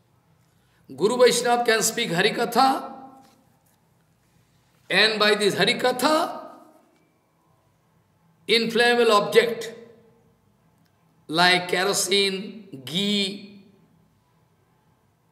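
An elderly man speaks slowly in short phrases, close to a microphone.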